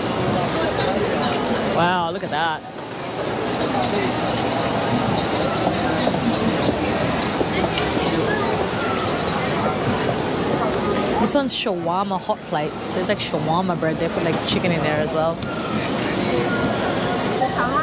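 A crowd of people chatters all around in a busy, noisy street.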